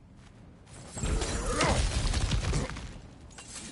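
A heavy body scrambles down rock and lands with a thud.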